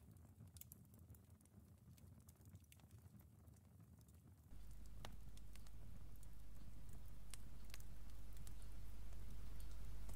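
A wood fire crackles and pops steadily.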